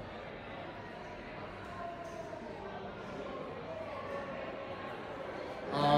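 A crowd murmurs faintly.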